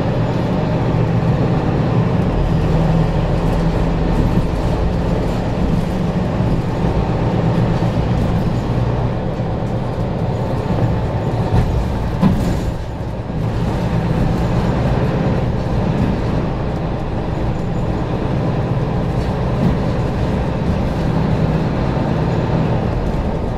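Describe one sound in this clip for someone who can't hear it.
A vehicle's engine hums steadily from inside as it drives along slowly.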